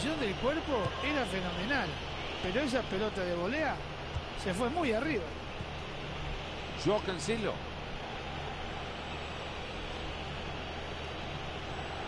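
A stadium crowd murmurs steadily in the background.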